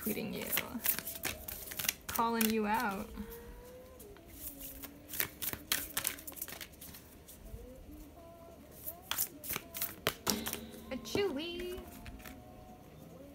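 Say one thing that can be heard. Playing cards riffle and snap as a deck is shuffled.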